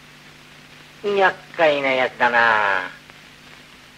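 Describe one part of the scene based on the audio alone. A young woman speaks briefly in a pleading voice, close by.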